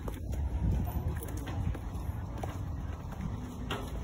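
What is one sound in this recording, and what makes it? Footsteps scuff on concrete steps.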